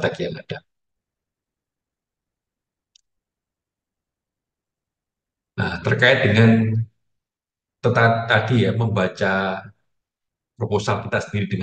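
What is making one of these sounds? A young man speaks calmly through an online call, with pauses.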